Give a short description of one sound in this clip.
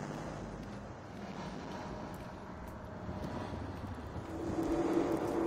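Footsteps walk on stone paving.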